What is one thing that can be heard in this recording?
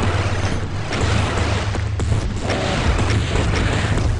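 Explosions roar and crackle.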